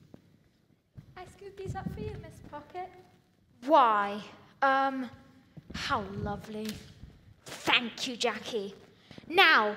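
A young girl speaks expressively on a stage, heard through a microphone in a large hall.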